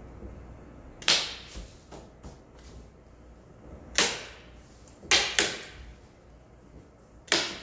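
Knocks and taps ring out on a wooden panel being pressed into place.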